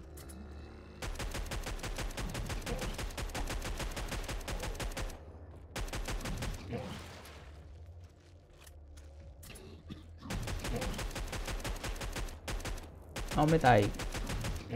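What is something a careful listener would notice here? A rifle fires rapid bursts.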